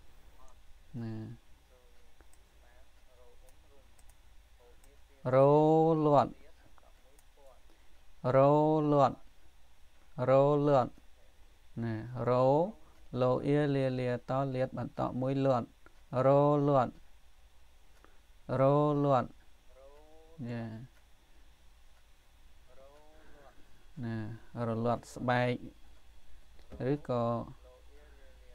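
A man reads out slowly and clearly into a close microphone, in short phrases with pauses between them.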